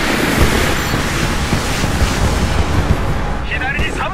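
Rockets whoosh past a helicopter.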